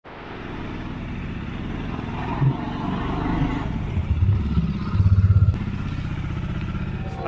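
A motorcycle engine idles and rumbles, revving up as the bike rolls out and turns.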